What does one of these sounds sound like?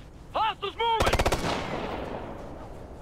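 A rifle fires a rapid burst that echoes away.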